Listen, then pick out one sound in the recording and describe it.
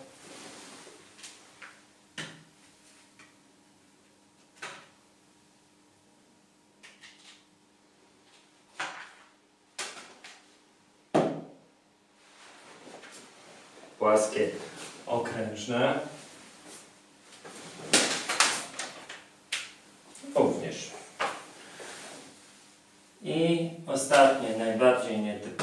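Pieces of wood clatter and knock on a hard floor.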